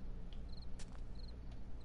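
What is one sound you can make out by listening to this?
A tool strikes the ground with a thud.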